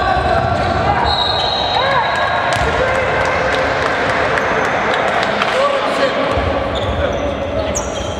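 Basketball shoes squeak sharply on a hard court in a large echoing hall.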